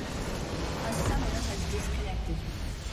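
A deep blast booms as a base structure explodes.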